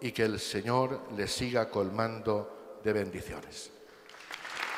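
An elderly man speaks slowly through a microphone in a large echoing hall.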